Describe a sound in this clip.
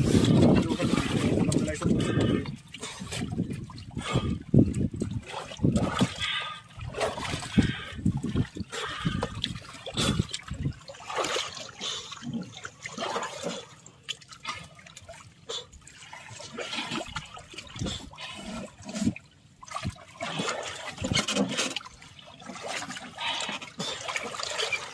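Water splashes as swimmers move about at the surface.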